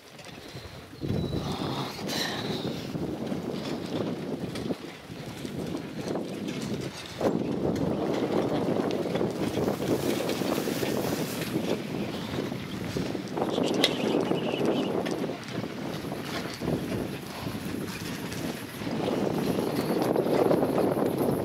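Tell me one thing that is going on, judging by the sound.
Wind rushes and buffets outdoors.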